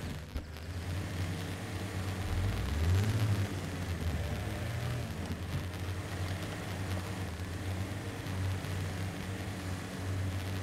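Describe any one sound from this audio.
An off-road truck engine rumbles and strains as it climbs over rocks.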